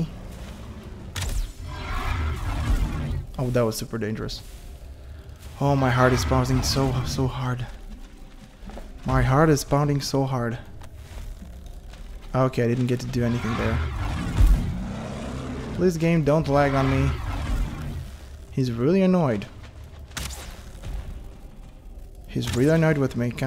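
Flames burst and roar in short flares.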